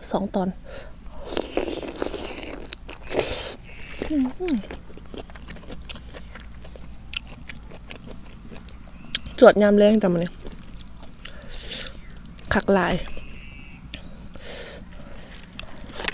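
A young woman chews food with wet, crunchy bites.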